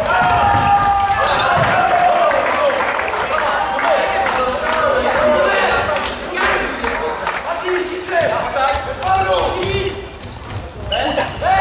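A ball thuds off a player's foot in a large echoing hall.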